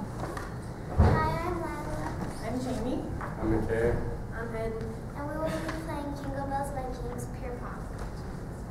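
A woman speaks through a microphone in an echoing hall.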